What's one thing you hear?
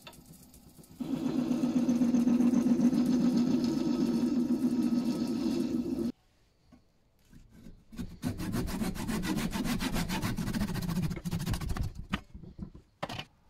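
A chisel scrapes loudly against spinning wood.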